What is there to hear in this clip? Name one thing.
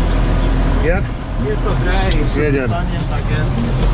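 A young man talks nearby, heard from outside the open cab door.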